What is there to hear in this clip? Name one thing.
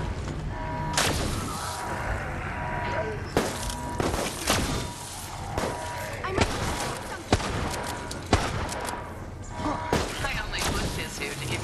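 A handgun fires sharp single shots.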